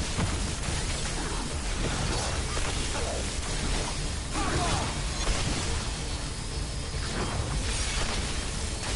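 Electric bolts crackle and zap on impact.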